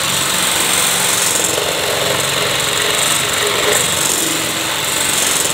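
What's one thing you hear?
An electric hand mixer whirs, whisking batter in a metal bowl.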